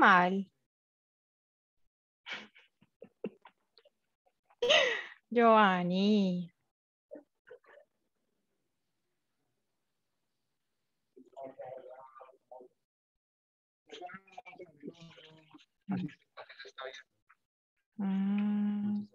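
Women speak in turns over an online call, with animation.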